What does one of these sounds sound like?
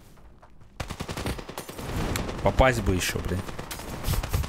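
Rifle shots ring out in rapid bursts.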